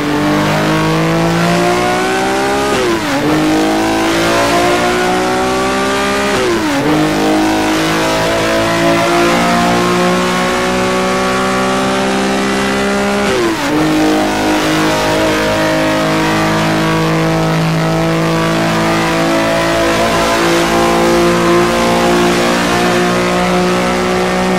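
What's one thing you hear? A racing car engine roars loudly, rising in pitch and dropping sharply at each gear shift.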